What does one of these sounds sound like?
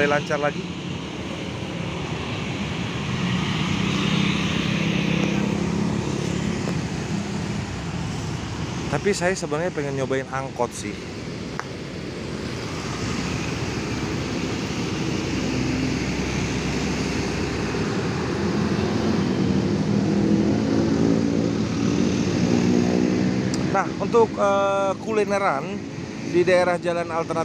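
Steady traffic roars past outdoors on a busy road.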